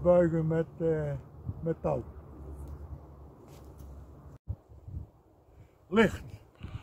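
An elderly man speaks calmly close by, outdoors.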